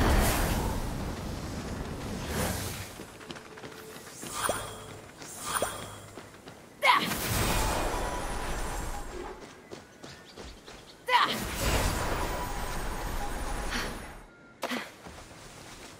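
A magical dash whooshes by in short rushing bursts, again and again.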